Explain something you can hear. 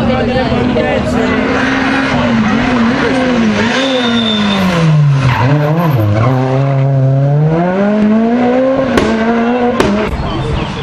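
A rally car engine roars loudly, revving up and down as the car takes a bend and speeds away.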